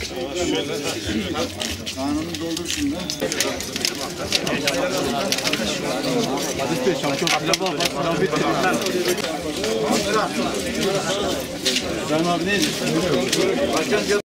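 A crowd of men chatter all around, close by.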